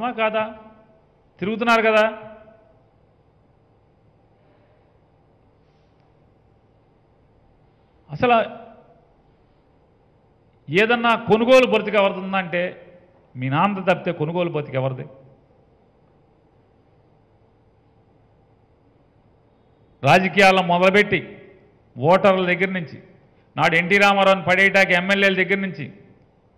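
A man speaks into a microphone with animation, in bursts with long pauses.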